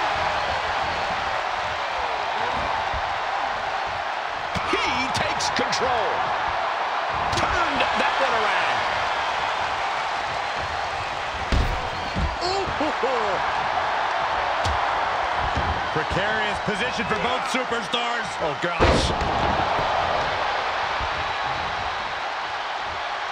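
A large crowd cheers and roars steadily throughout.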